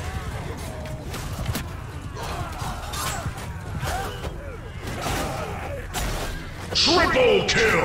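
Swords clash and strike against armour.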